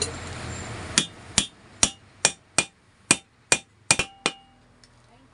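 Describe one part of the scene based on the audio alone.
A hammer taps sharply on metal several times.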